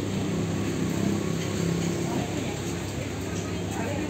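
Traffic rumbles steadily on a nearby street.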